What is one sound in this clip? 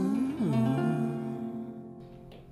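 A woman sings.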